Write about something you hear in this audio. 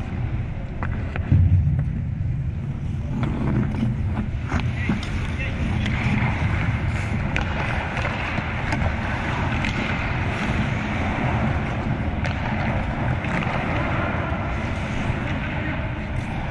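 Skate blades scrape and carve across the ice.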